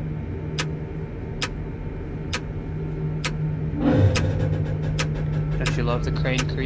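A crane's motor hums steadily.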